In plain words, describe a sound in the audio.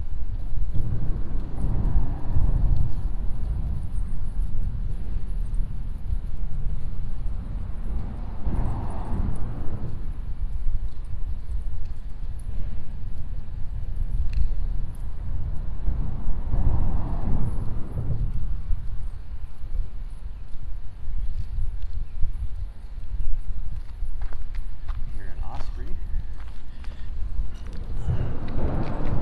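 Wind blows strongly outdoors, gusting across the microphone.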